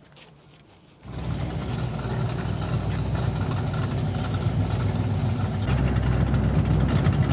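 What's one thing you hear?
A powerful car engine rumbles loudly at idle nearby.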